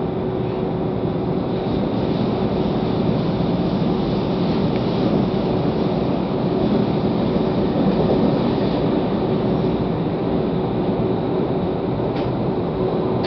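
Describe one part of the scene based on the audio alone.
A train's roar grows louder and more hollow inside a tunnel.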